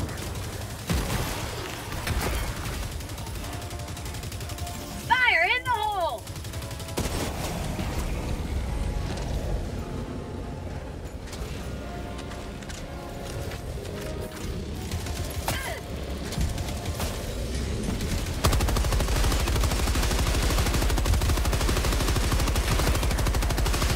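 Gunfire rattles loudly and rapidly.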